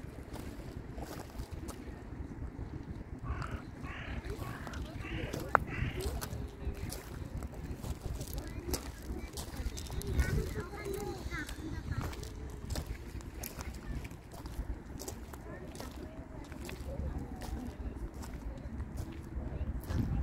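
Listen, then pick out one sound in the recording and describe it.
Gentle waves lap softly over pebbles at the water's edge.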